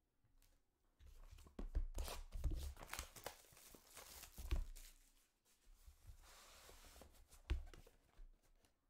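Plastic wrapping crinkles and rustles as hands handle a box.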